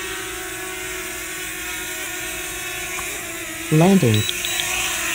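A drone's propellers hum steadily close by.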